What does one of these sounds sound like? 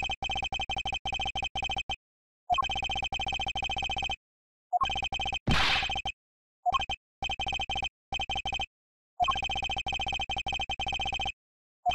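Rapid, high electronic blips chatter in quick bursts as dialogue text types out, pausing between lines.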